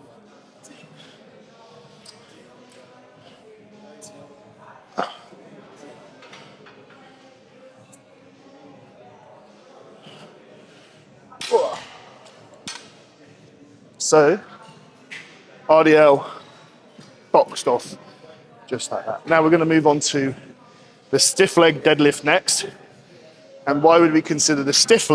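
A barbell's weight plates clank as they are lifted and set down.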